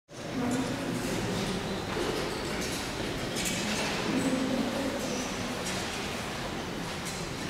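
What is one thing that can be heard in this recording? A large brass band plays a slow, solemn march in an echoing hall.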